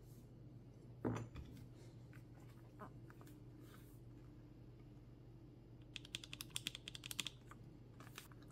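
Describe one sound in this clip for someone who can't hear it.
Keyboard keys clack and click under fingers.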